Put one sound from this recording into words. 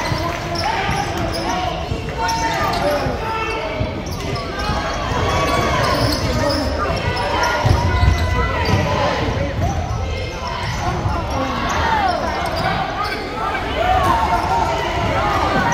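A basketball bounces with dull thumps.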